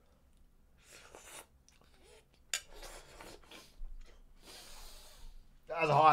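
A young man slurps noodles.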